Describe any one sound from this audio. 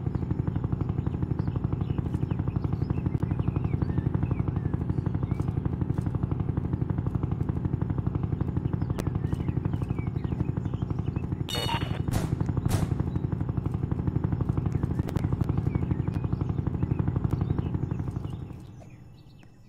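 A helicopter's rotor thumps loudly and steadily, then stops.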